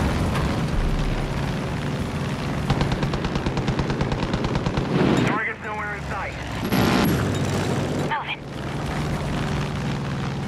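A small propeller plane's engine drones steadily throughout.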